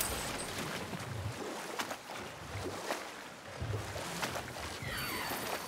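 Water splashes and laps against a rowing boat.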